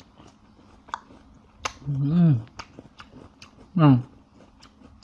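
A young man chews soft food with wet smacking sounds close by.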